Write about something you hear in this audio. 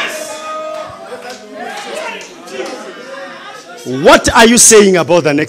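A man preaches with animation through a microphone in a large hall.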